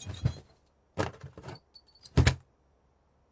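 A hand knocks on a door.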